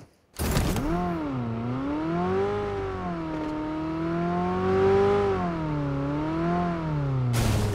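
A car engine revs and whines, rising and falling in pitch.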